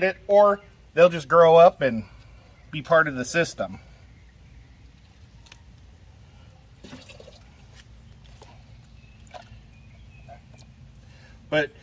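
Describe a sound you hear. Water splashes and trickles softly.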